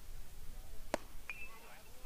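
A baseball smacks into a catcher's mitt.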